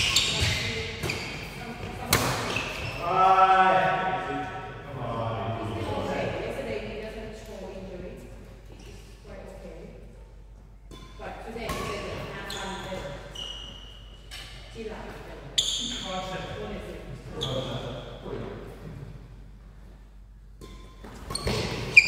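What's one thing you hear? Shuttlecocks are struck sharply with rackets in a large echoing hall.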